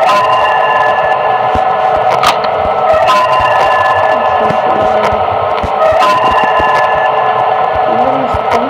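A steady electronic hum with static drones throughout.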